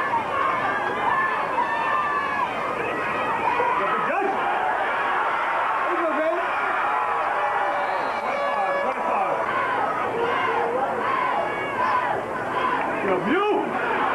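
A large crowd of spectators cheers and shouts outdoors.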